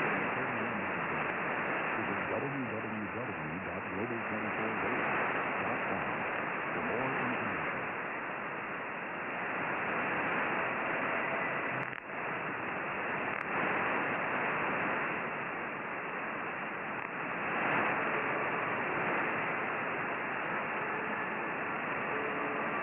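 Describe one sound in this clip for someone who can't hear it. Shortwave radio static hisses and crackles steadily, thin and muffled.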